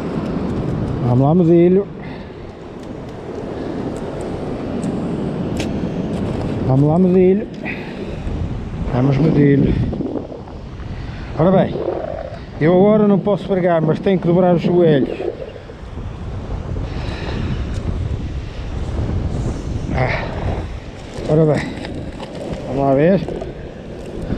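A man talks close by, with animation.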